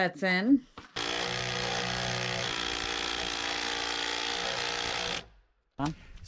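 A power drill whirs steadily.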